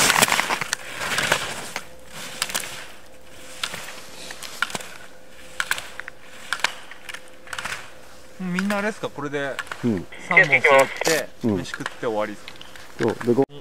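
Skis scrape and hiss across hard snow in quick turns.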